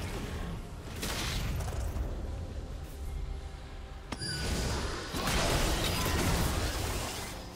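Fighting game sound effects of spells and blows crash and whoosh in quick bursts.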